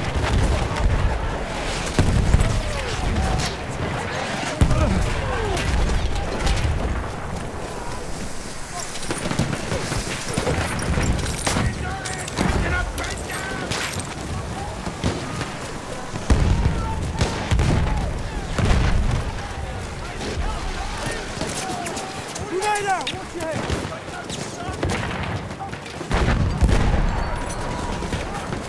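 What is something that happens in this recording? Explosions boom and rumble nearby.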